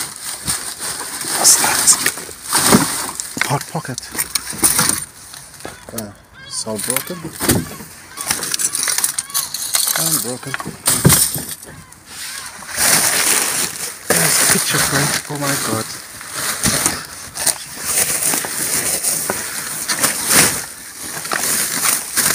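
Plastic bags rustle and crinkle as rubbish is rummaged through.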